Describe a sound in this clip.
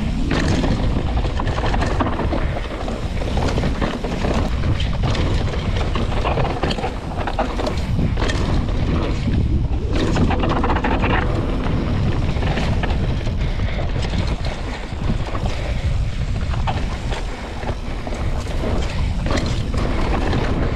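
Bicycle tyres rattle and crunch over a rough dirt trail.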